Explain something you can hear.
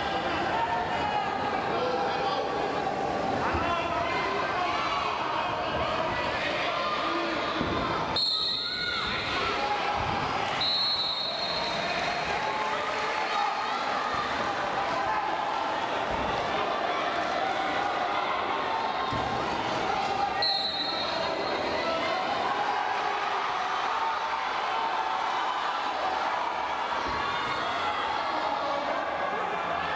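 A large crowd cheers and chatters in an echoing hall.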